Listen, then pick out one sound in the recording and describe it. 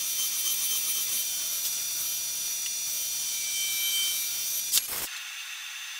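A milling machine whines steadily as a cutter bores into metal.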